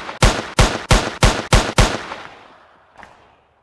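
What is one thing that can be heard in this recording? A pistol fires several quick shots that echo and fade.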